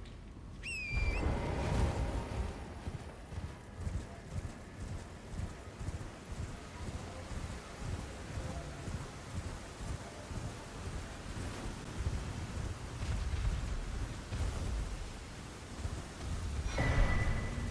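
Hooves thud rhythmically as a horse gallops.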